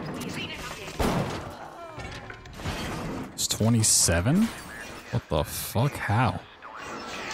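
A revolver fires with loud bangs.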